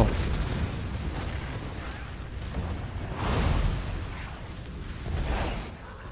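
A spell crackles and roars in bursts.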